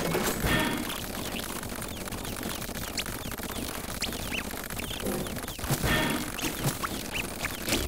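Rapid game sound effects of pops and zaps crackle without a break.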